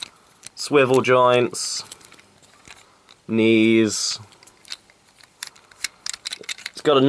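Plastic toy parts click and snap as they are moved.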